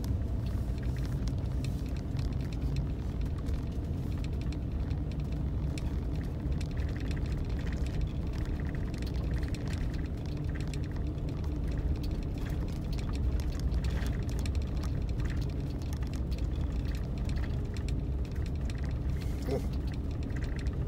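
Tyres rumble and crunch over a packed snowy road.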